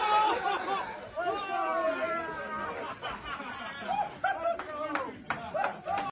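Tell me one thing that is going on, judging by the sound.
Several young men shout and cheer loudly in celebration.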